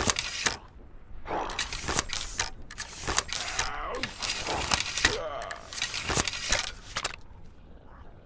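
A rifle's metal parts click and clack sharply as it is handled.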